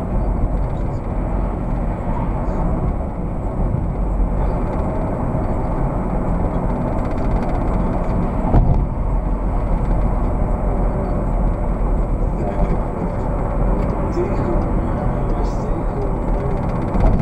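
A car's engine hums steadily.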